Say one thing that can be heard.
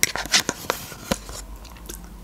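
A spoon scrapes and taps against a plastic cup close up.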